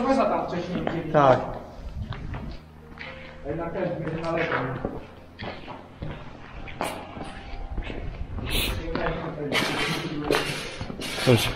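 A man talks with animation close by, in a large echoing space.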